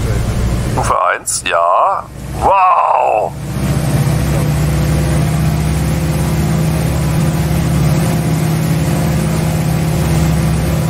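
A light aircraft engine drones steadily.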